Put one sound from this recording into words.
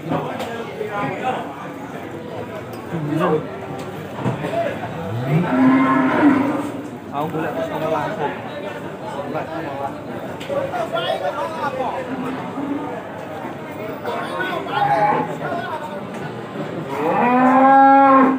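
A young man talks nearby.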